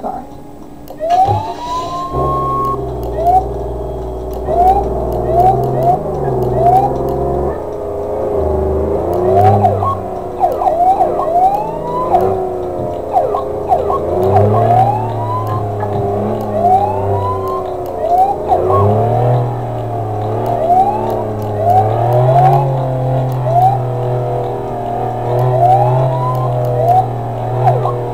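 A police siren chirps in short rising bursts.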